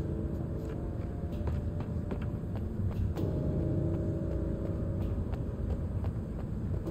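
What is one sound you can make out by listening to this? Footsteps tread on a hard floor at a steady walking pace.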